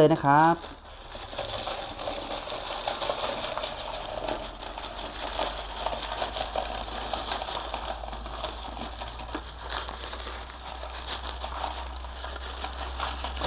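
Small pebbles rattle and clatter as they pour into a pot.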